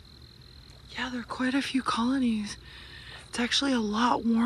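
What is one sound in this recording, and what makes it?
A young child calls out loudly.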